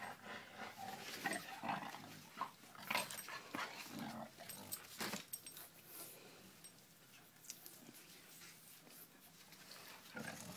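A young dog yips and howls.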